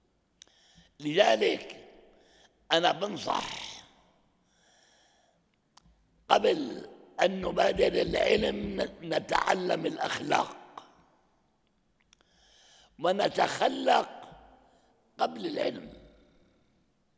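An elderly man speaks with emphasis into a microphone, in bursts with pauses, in a slightly echoing room.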